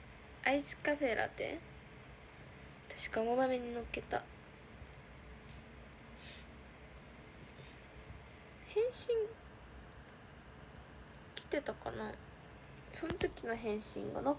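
A young woman speaks softly and casually, close to a phone microphone, in short bursts.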